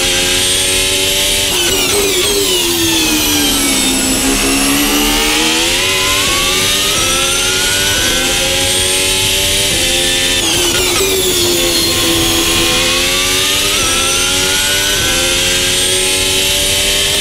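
A racing car engine screams loudly, dropping in pitch under braking and rising as it speeds up through the gears.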